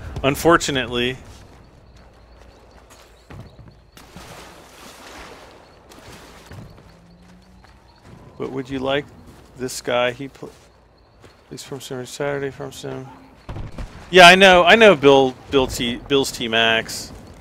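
Footsteps rustle through forest undergrowth.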